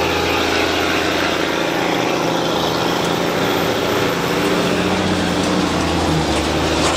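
A tractor's diesel engine rumbles loudly and steadily close by.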